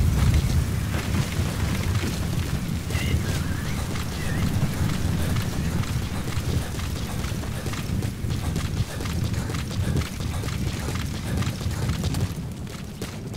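Wind roars in a sandstorm.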